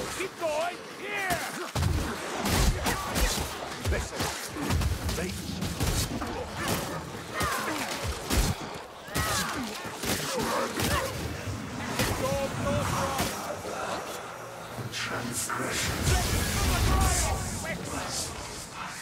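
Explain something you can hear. Blades slash and thud into bodies in quick, repeated hits.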